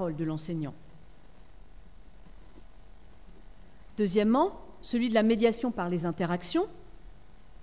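A woman speaks calmly through a microphone in a large room, with pauses.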